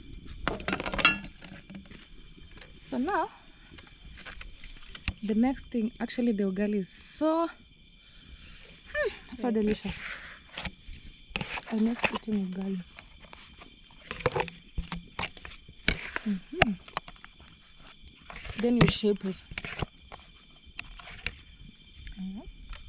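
A woman speaks calmly close by.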